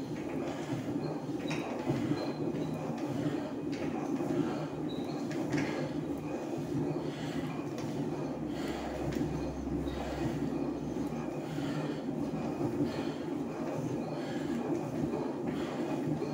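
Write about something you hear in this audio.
Metal joints of an exercise machine squeak and click with each stride.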